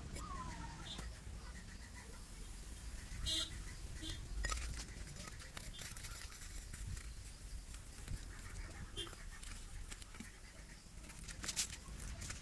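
A plastic pipe creaks and scrapes as it is twisted by hand.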